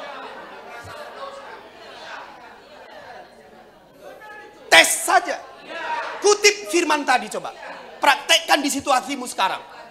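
A middle-aged man preaches with animation through a microphone and loudspeakers.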